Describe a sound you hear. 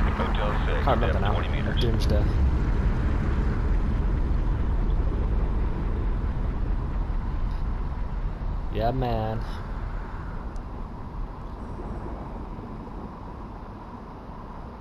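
Air bubbles gurgle and burble underwater.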